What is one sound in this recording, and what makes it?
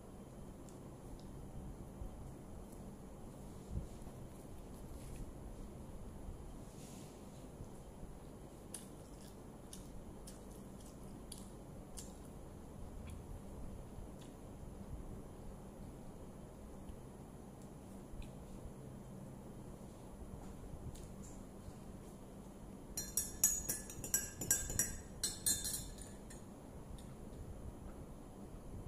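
A woman chews food quietly up close.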